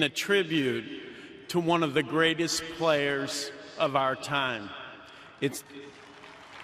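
A middle-aged man speaks calmly into a microphone in a large echoing space.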